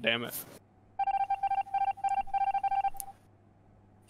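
Short electronic beeps repeat quickly and evenly.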